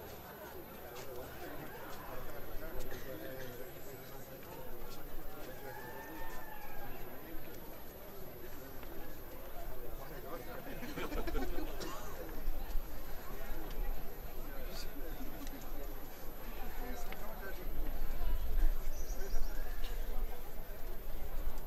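A crowd of men and women murmurs quietly nearby outdoors.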